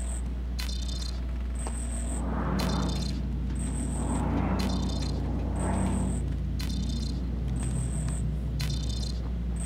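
An electronic scanner pings and chirps in a steady repeating rhythm.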